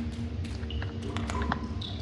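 Small footsteps patter on a hard floor.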